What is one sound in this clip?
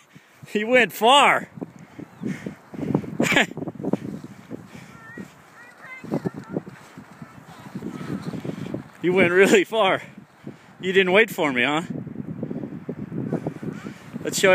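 A plastic sled scrapes and crunches over snow.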